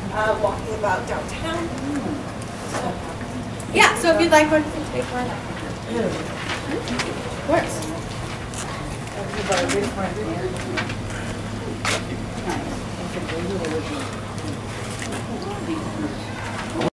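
A young woman speaks clearly to a small group outdoors.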